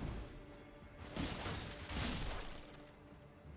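Blades slash and strike in a short fight.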